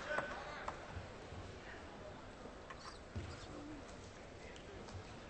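Spectators murmur softly in a large echoing hall.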